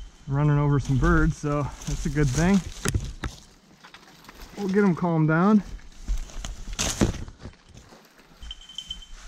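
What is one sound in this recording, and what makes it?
Leafy branches rustle and brush past.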